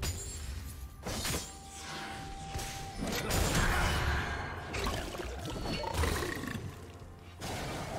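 Game spell effects whoosh and clash in a fight.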